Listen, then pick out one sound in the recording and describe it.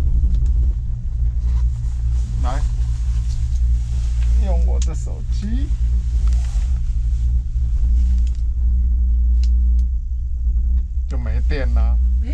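Wind buffets and rumbles steadily outdoors.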